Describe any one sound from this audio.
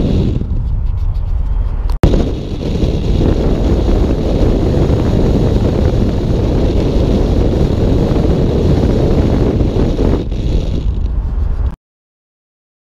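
Wind rushes and roars loudly past a moving vehicle.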